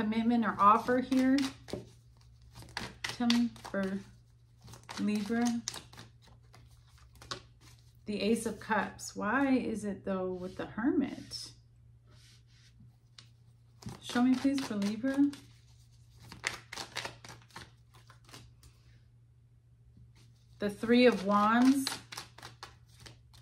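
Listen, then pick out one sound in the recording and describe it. Playing cards shuffle and slap softly.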